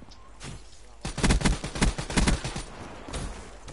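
A rifle fires a quick burst of loud gunshots.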